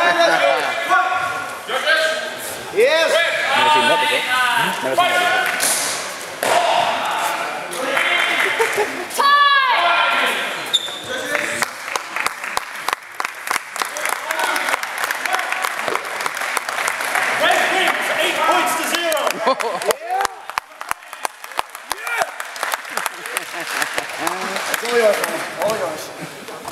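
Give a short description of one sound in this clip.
A crowd of people talk and call out in a large echoing hall.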